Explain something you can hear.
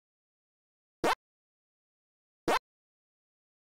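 A game's short beeps sound.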